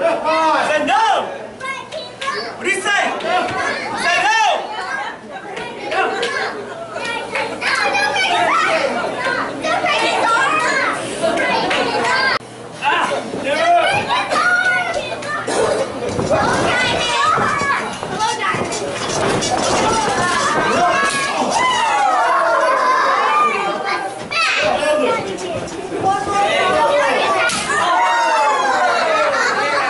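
A crowd of adults shouts and cheers in an echoing hall.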